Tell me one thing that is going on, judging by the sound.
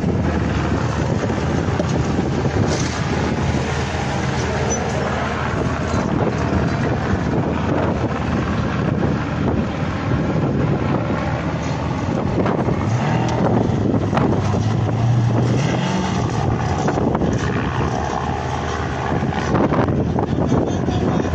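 A race truck engine rumbles and revs loudly.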